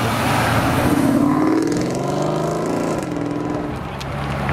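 A sports car engine revs loudly and roars as the car pulls away.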